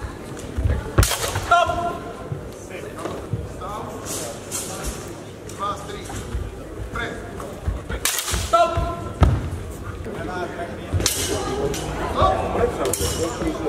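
Fencing blades clash and clatter.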